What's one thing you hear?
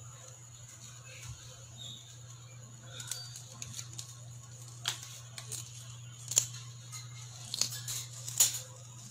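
A parrot nibbles and crunches on food with sharp little clicks.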